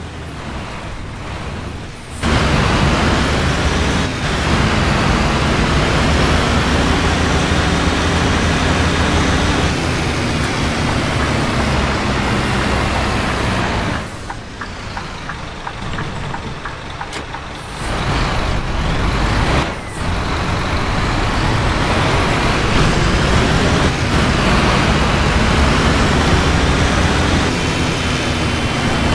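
Rain patters steadily on the bus windows.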